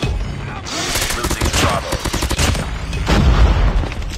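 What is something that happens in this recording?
A sniper rifle fires with a loud crack.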